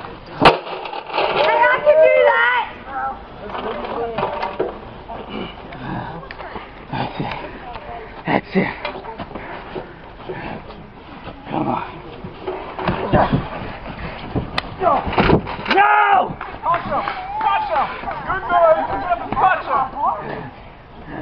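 Young men shout and cheer close by, outdoors.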